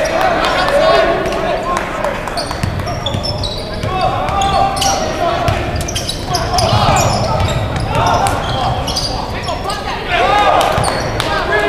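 A crowd murmurs and shouts in a large echoing gym.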